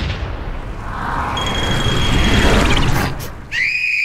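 A cartoon creature yells in surprise in a squeaky voice.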